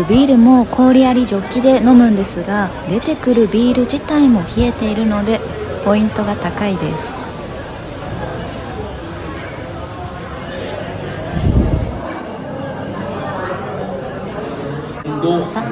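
A crowd of diners chatters in the background.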